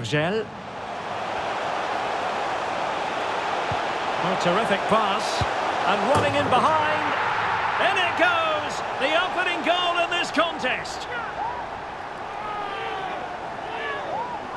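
A large crowd roars and cheers, swelling loudly.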